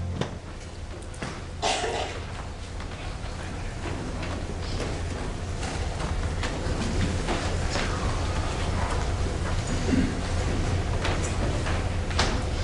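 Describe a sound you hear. Equipment knocks and clatters nearby.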